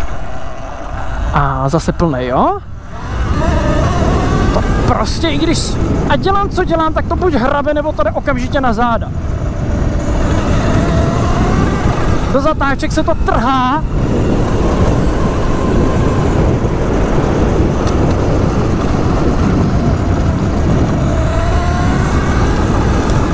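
Tyres crunch and rumble over a gravel dirt track.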